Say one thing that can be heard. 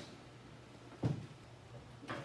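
A car hood drops shut with a dull thud.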